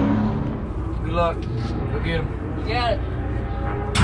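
A race car engine revs in short bursts.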